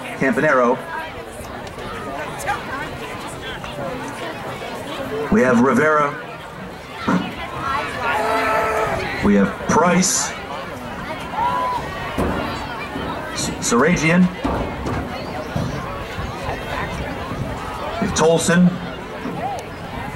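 A crowd of adults and children chatters outdoors.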